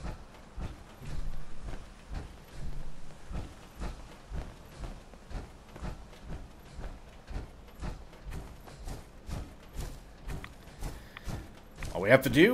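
Heavy metal footsteps thud at a steady walking pace.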